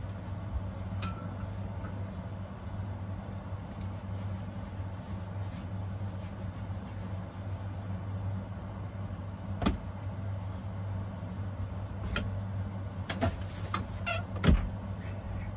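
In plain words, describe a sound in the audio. Utensils knock and clatter against dishes.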